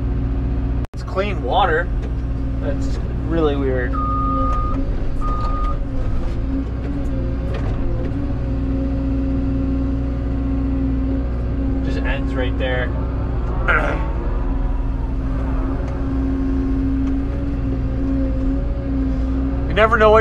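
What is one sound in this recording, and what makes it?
Hydraulics whine and rise in pitch as an excavator arm moves.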